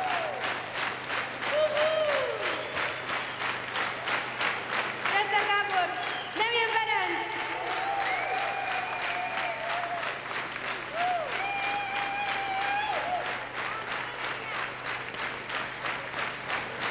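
A large crowd claps in a fast, steady rhythm.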